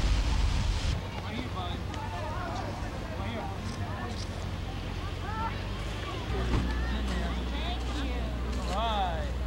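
A crowd of adults and children chatters in the distance outdoors.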